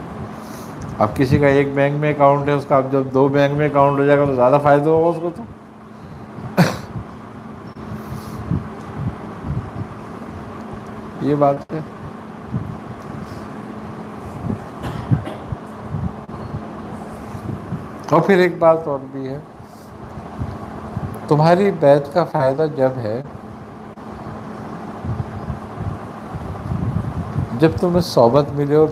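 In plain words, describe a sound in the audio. An elderly man recites in a slow, melodic chanting voice close to a microphone, with pauses between phrases.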